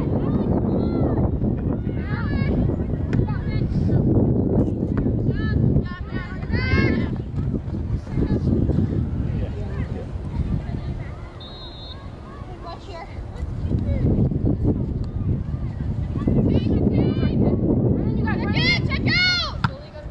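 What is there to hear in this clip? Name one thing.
Girls shout to each other across an open field.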